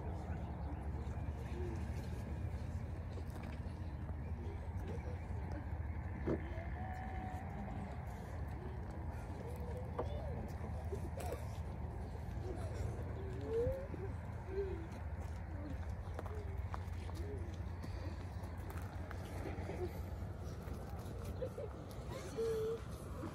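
Men and women murmur quietly nearby.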